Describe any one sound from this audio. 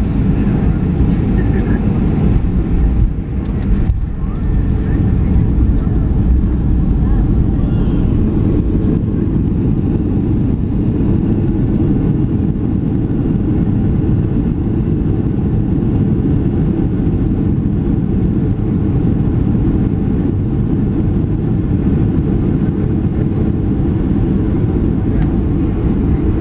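Tyres of a jet airliner rumble along a runway, heard from inside the cabin.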